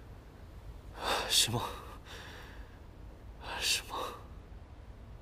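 A young man sighs sleepily.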